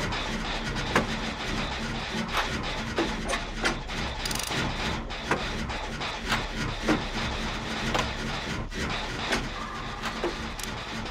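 Metal parts clank and rattle as an engine is repaired.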